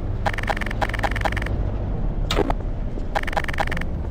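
A pistol clicks and rattles as it is reloaded.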